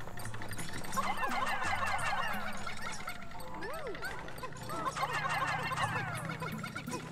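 A swarm of small creatures chirps and chatters in high, squeaky voices.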